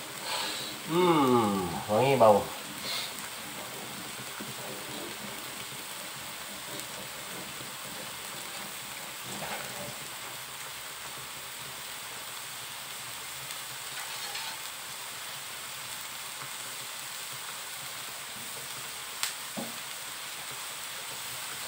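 A thick mixture sizzles and bubbles gently in a hot pan.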